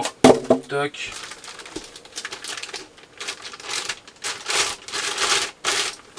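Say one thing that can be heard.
A plastic bag crinkles and rustles in a man's hands.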